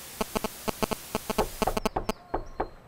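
A television hisses with static.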